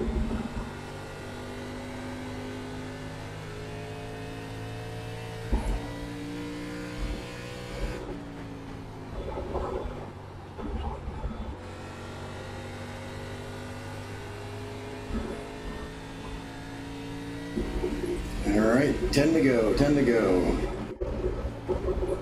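A racing car engine roars steadily, rising and falling in pitch through the laps.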